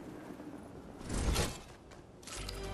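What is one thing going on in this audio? A character lands with a thud on a rooftop.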